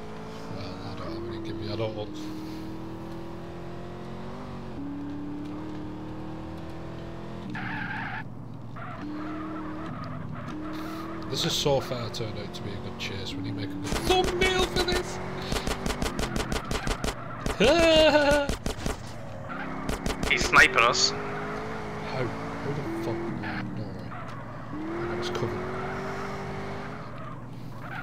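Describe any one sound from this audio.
A car engine drones and revs steadily.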